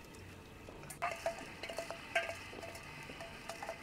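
A metal lid clanks against a metal pot.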